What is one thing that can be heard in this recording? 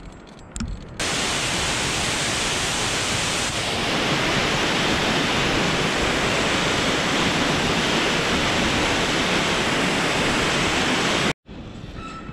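A waterfall rushes and splashes close by.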